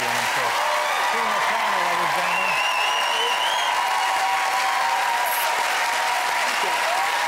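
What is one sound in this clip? A woman laughs with animation into a microphone.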